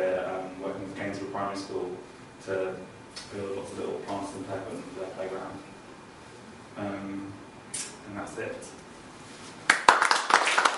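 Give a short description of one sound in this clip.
A young man speaks calmly to an audience.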